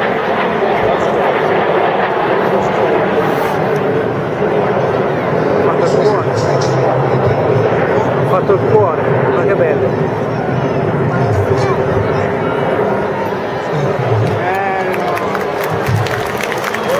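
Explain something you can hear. Jet planes roar far overhead.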